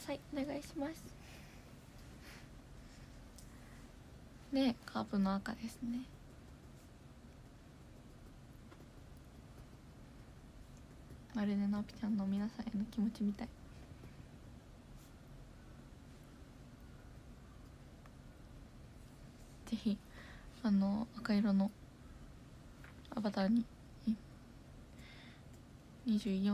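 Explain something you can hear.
A young woman speaks softly in short bursts, close to a microphone.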